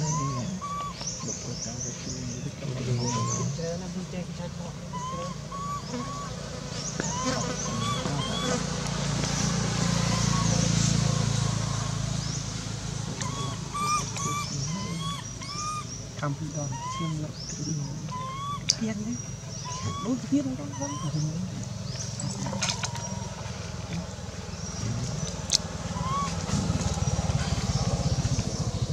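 A young monkey squeaks in short, high cries again and again.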